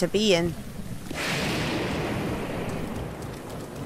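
Thunder cracks and rumbles nearby.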